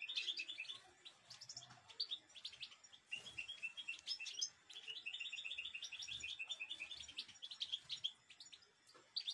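A small bird chirps rapidly and repeatedly close by.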